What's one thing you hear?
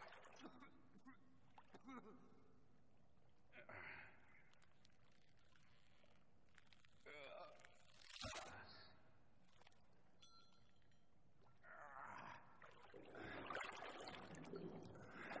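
A man groans and breathes heavily in pain.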